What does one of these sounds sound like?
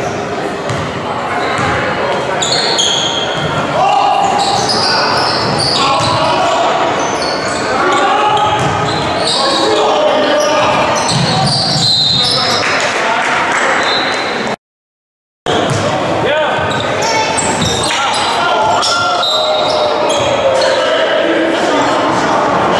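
Spectators chatter and shout in a large echoing gym.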